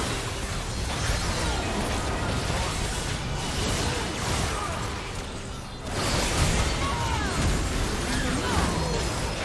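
Magic spells crackle and blast.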